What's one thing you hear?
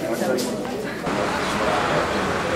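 Traffic rumbles nearby outdoors.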